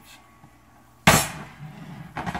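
A heavy pot clunks down onto a glass stovetop.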